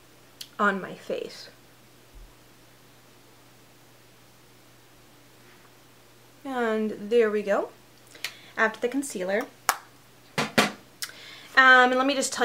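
A young woman talks calmly and close up, in short bursts with pauses.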